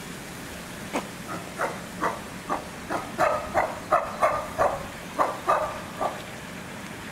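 Chimpanzees hoot and call in quick bursts.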